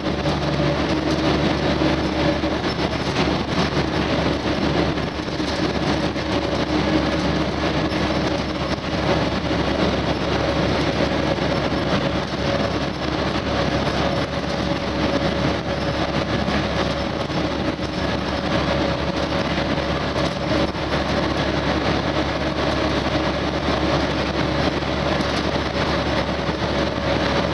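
A vehicle engine drones steadily with a rushing noise.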